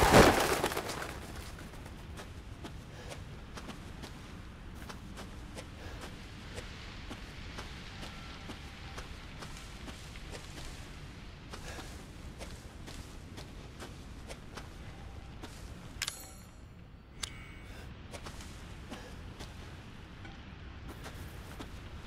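Leaves and branches rustle as someone pushes through dense brush.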